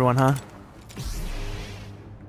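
A lightsaber ignites with a crackling hum.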